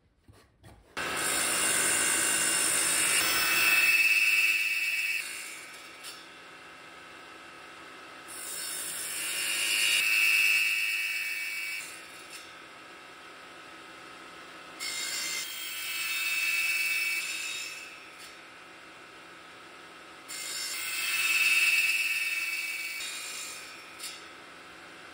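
A saw blade whines loudly as it cuts through wood, again and again.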